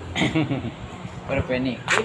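A man laughs nearby.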